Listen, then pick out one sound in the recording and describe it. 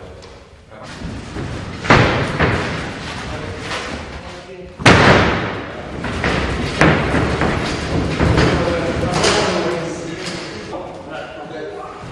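Wooden frames knock and clatter as they are raised.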